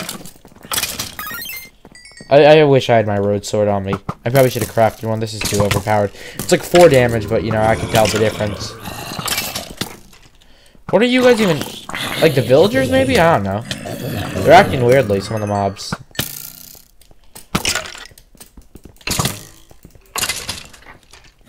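A sword strikes monsters with short, sharp hits.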